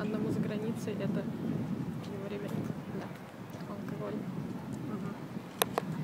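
A young woman talks close by, calmly.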